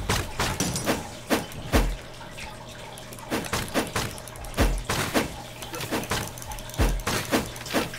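Sword slashes swish and strike in quick bursts with deep thuds.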